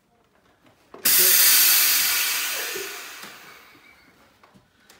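A carbonating machine hisses loudly, then fades.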